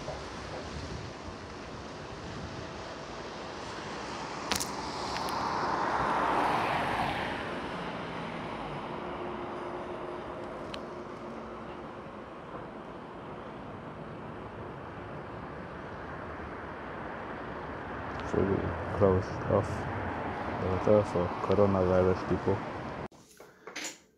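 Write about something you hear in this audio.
Traffic hums steadily on a wet road outdoors.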